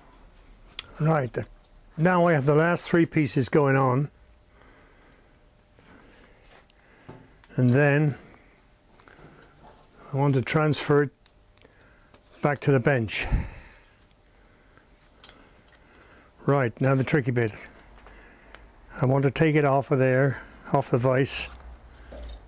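An elderly man speaks calmly, close by, in short bursts with pauses.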